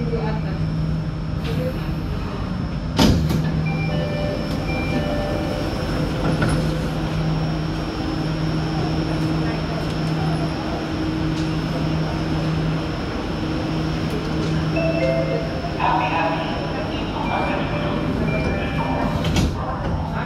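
A train's motor hums steadily.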